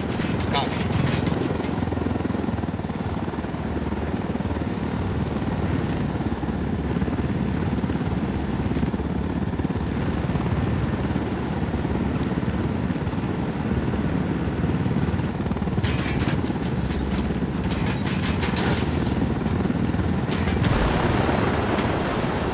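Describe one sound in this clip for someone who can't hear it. A helicopter's rotor thumps and roars steadily.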